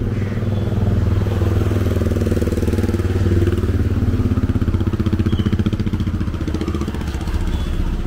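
A car drives past close by on a wet road.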